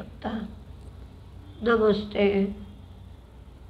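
An elderly woman speaks calmly and briefly, close by.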